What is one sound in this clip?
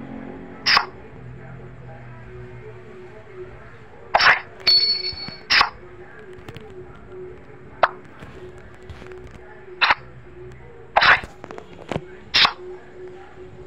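Short card swishes and clicks sound from a card game as cards are played.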